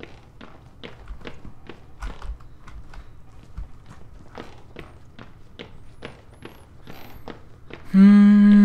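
Footsteps thud slowly on a wooden floor.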